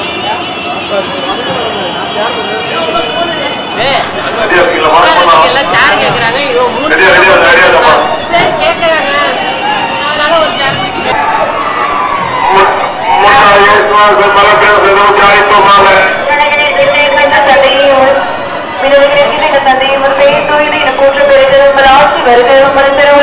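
A crowd of men and women chatters and calls out loudly outdoors.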